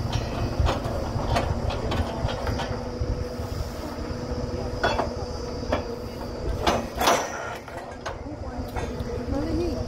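Metal clanks sharply now and then.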